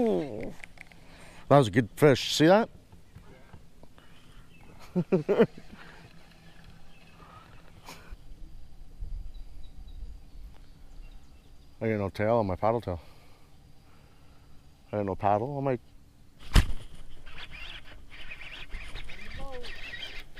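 A fishing reel clicks and whirs as its handle is cranked.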